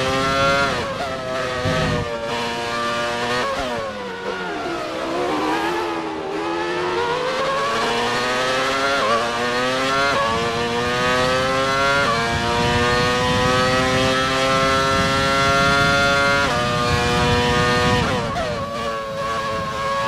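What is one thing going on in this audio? A racing car engine screams, dropping in pitch as it slows for a bend and rising again through quick gear shifts.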